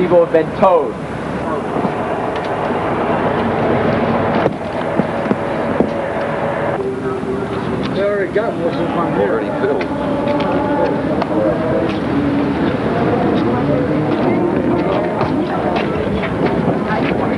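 A crowd of adults chatters and murmurs nearby.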